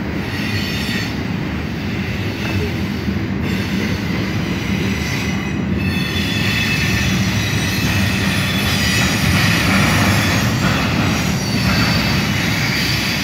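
A freight train rumbles past close by with a steady roar.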